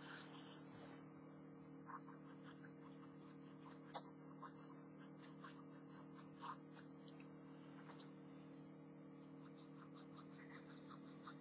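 A pen scratches softly across paper in short strokes.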